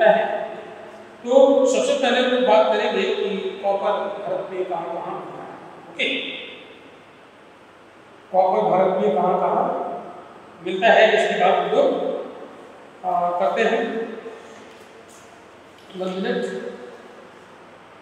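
A man speaks calmly in short bursts close to a microphone, with a slight room echo.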